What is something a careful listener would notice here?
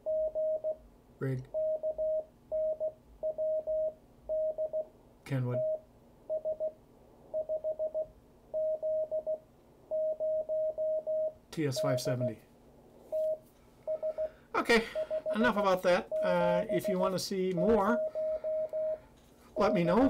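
A radio receiver beeps out Morse code in short, even tones.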